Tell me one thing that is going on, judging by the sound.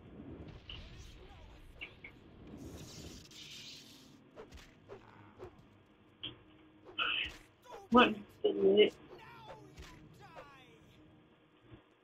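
Blows thud and clatter in a fight.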